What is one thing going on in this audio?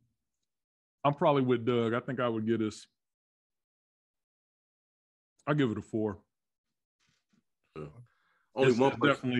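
Several men talk by turns over an online call.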